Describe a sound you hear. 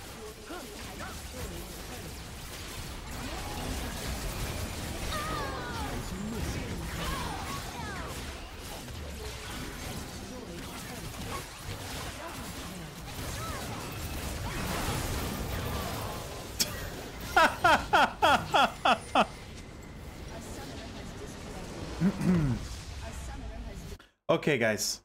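Game spell effects and clashes crackle and boom.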